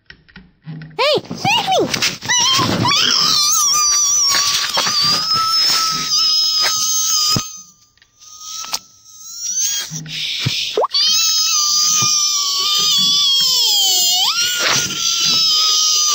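A man sings a long, wavering high note, with short breaks.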